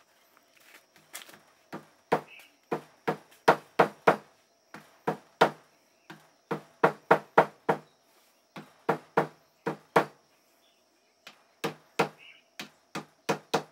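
A hammer taps steadily in quick, dull knocks.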